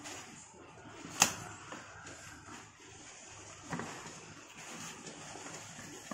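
A banana leaf rustles and crinkles as hands fold it.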